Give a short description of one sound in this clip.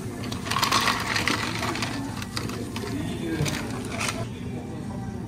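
Ice cubes clink and rattle in plastic cups.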